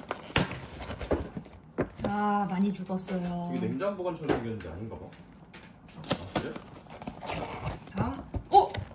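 A cardboard box of chocolates rustles and clicks as hands move it.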